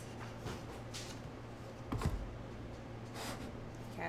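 A wooden board is set down on a table with a knock.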